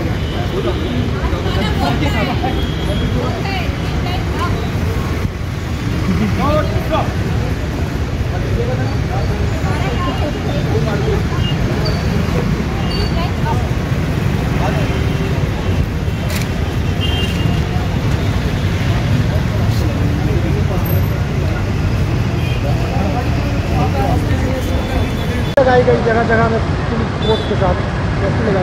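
Traffic hums steadily in the background.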